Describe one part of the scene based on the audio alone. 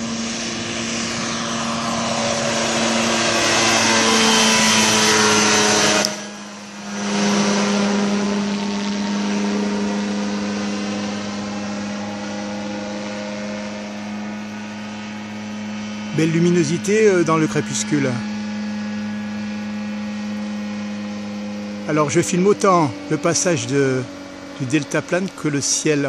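A microlight engine drones overhead, growing louder as it passes close and then fading slowly into the distance.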